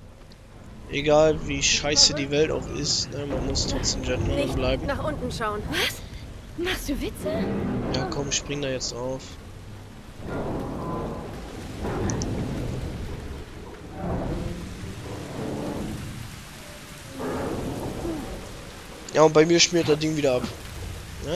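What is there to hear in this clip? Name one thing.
A man speaks with animation.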